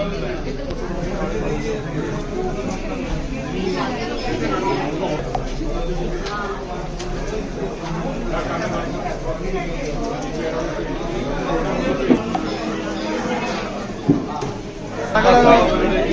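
Several people talk at once nearby.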